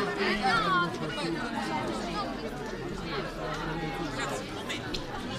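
A crowd of men and women chatter outdoors.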